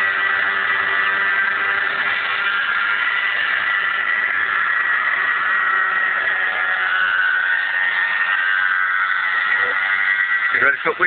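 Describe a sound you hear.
A small helicopter's motor whines steadily as it flies overhead.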